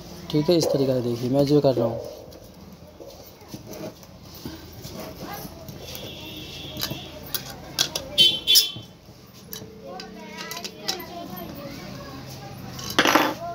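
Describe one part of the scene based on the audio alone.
A screwdriver scrapes and taps against a metal motor casing.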